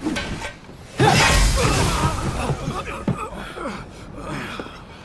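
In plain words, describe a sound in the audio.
Metal weapons clash and thud in a loud fight.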